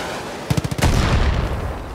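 A gun fires a quick burst of shots.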